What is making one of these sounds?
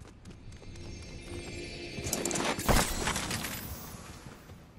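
A chest bursts open with a shimmering chime.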